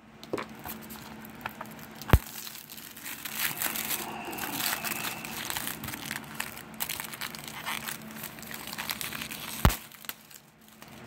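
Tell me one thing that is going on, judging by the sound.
Plastic shrink wrap crinkles as it is peeled off a case.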